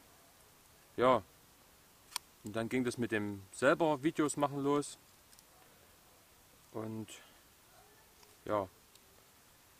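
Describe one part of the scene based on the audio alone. A young man talks calmly nearby.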